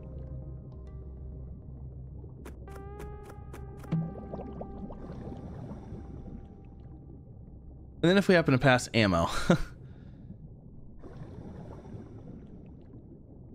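Water murmurs softly and steadily underwater.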